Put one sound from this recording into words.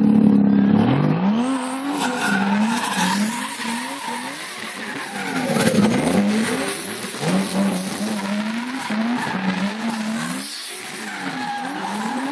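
Engines rev up and down in short bursts as several cars go by close.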